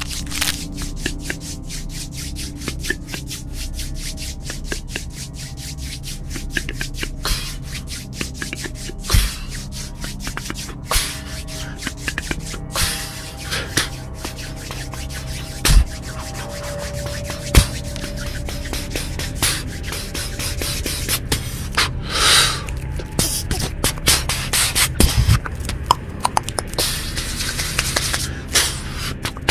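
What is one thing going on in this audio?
Hands tap and crackle close to a microphone.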